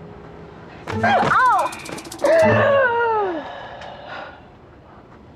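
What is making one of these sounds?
A young woman cries out in surprise close by.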